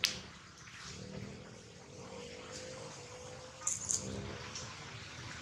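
A baby long-tailed macaque gives thin whimpering squeals.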